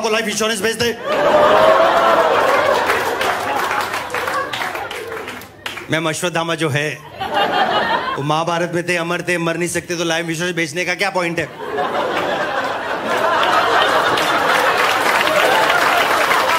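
An audience laughs and claps.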